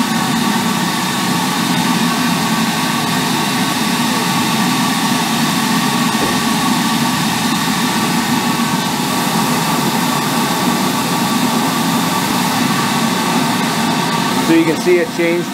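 A sandblaster hisses steadily inside a closed cabinet.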